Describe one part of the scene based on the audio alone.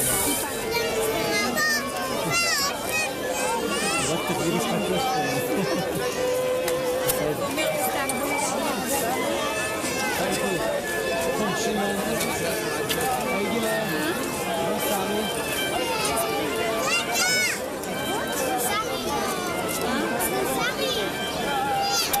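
A large crowd of men, women and children chatters and calls out all around, close by, outdoors.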